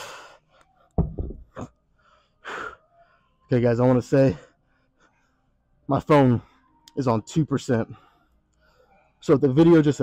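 A man talks calmly and close by, a little out of breath.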